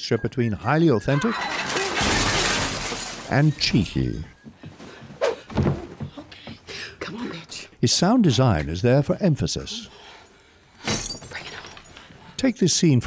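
A woman grunts and cries out with strain close by.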